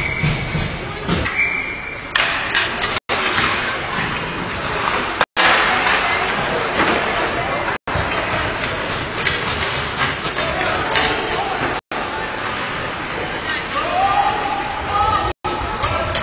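Hockey skates scrape and carve across ice in a large echoing rink.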